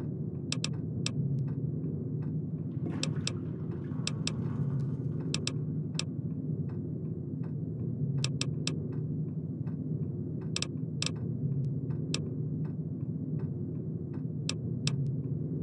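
Short electronic clicks tick again and again as menu items are picked.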